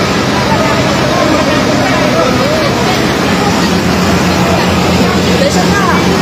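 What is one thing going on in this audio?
Water sprays from a fire hose with a steady hiss.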